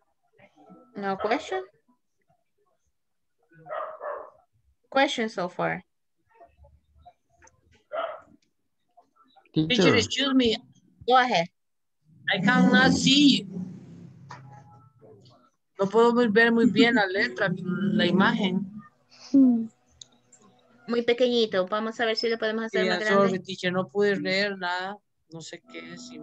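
A woman speaks calmly over an online call, reading out.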